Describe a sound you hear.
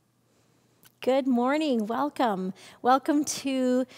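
A middle-aged woman speaks warmly and clearly into a microphone in a quiet, slightly echoing room.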